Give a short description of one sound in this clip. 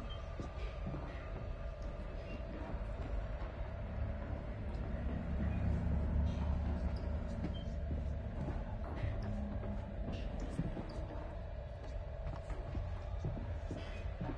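Footsteps tread slowly across a floor.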